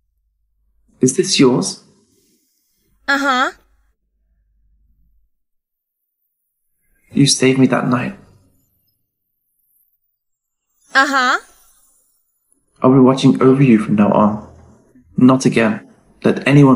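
A young man speaks softly and close by.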